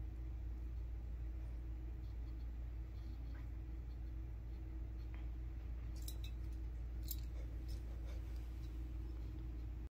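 Two small dogs play-wrestle with soft rustling.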